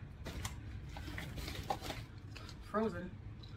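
A plastic wrapper rustles and crinkles in hands.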